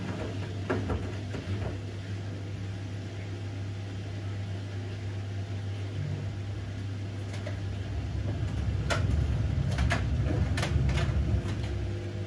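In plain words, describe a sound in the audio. Items knock against the inside of a washing machine drum.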